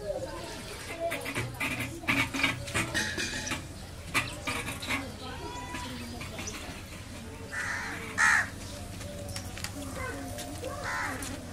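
A wooden cot knocks and scrapes as it is dragged on the ground.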